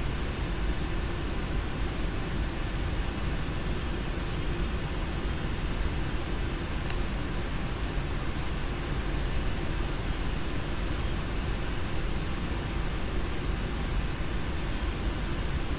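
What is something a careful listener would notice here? Jet engines hum steadily as an airliner taxis.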